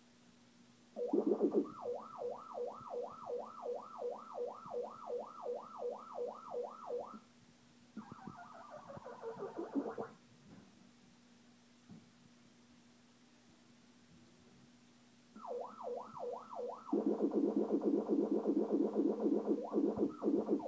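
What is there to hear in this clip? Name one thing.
An arcade game plays a fast repeating warbling electronic siren.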